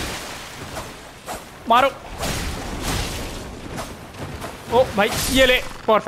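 A blade swishes and strikes.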